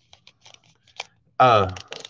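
A plastic card wrapper crinkles and tears as hands open it.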